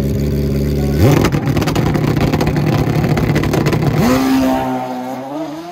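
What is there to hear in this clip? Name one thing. A motorcycle engine roars as it launches away.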